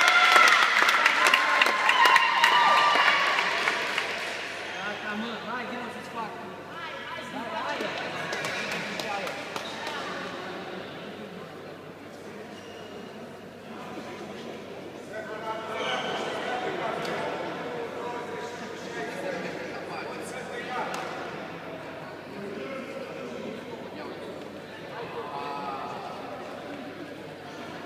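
People chatter in a large echoing hall.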